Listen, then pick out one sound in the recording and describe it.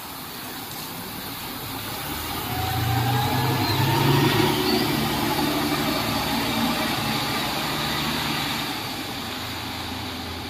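A bus engine rumbles as the bus pulls away and passes close by.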